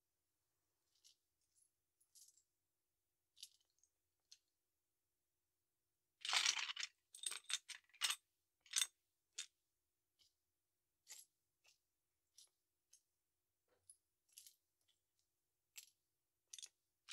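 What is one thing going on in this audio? Loose plastic bricks clatter and rattle as a hand sorts through a pile.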